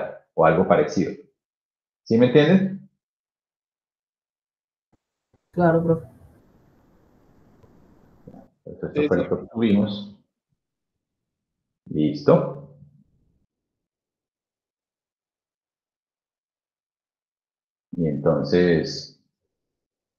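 A young man speaks calmly over an online call, in short phrases with pauses.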